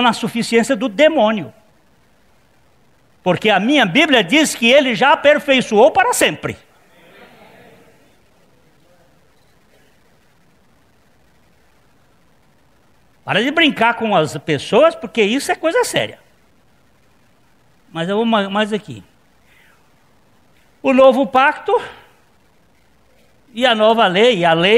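A middle-aged man lectures with animation through a microphone, pausing between phrases.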